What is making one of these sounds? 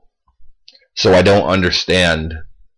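A man speaks loudly and with animation close to the microphone.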